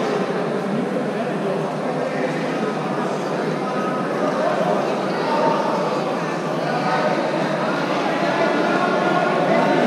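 Many men and women talk and call out at once in a large echoing hall.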